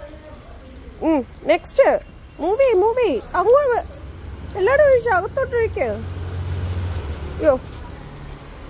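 A young girl talks and squeals excitedly close by.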